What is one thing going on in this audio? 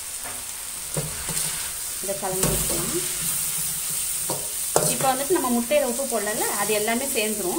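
A metal spatula scrapes and clatters against a metal pan.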